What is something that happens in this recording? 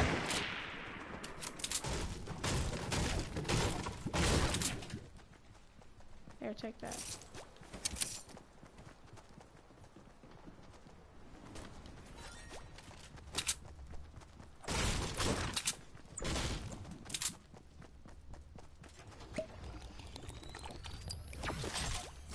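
Loud thuds and crashes from a video game come in bursts.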